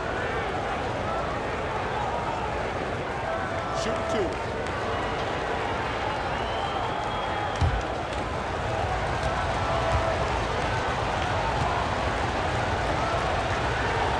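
A large arena crowd murmurs and cheers steadily.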